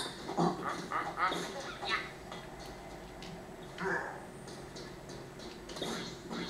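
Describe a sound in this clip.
Video game sound effects chirp and clatter from a television speaker.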